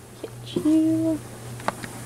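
Fabric rustles as a hand rummages through clothes.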